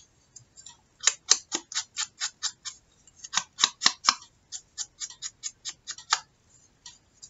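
An ink pad taps lightly and repeatedly against paper.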